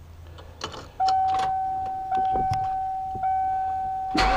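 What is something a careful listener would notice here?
A vehicle's warning chime beeps steadily, repeating every second or so.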